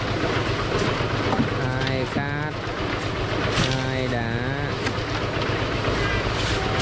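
Shovels scrape and crunch into gravel.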